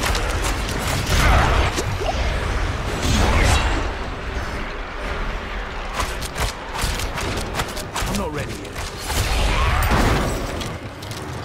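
Deep booming impacts rumble now and then.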